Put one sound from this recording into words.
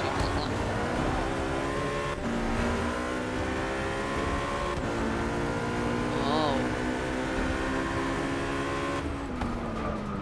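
A high-revving race car engine roars, climbing in pitch and dropping at each gear change.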